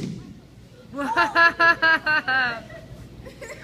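A young girl cheers loudly.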